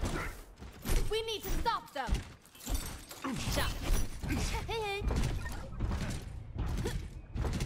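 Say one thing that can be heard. Weapons fire in quick bursts during a video game fight.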